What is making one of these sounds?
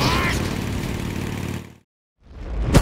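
A motorcycle engine roars.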